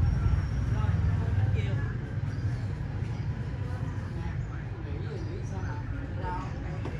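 A woman speaks quietly nearby.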